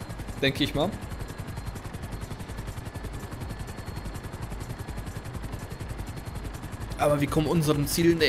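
A helicopter's rotor chops rapidly and steadily.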